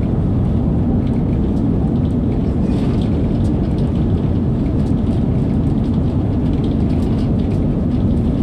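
A train rumbles steadily at speed through a tunnel, with a deep roar.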